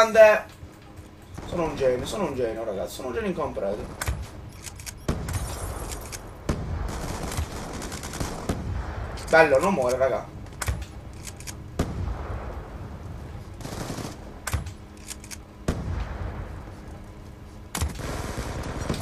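Gunshots crack in bursts from the game.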